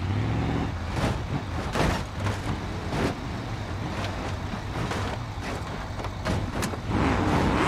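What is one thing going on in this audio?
A car thumps down wooden steps.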